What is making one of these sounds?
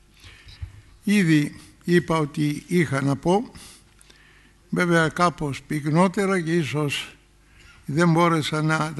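Another elderly man speaks slowly and earnestly through a microphone.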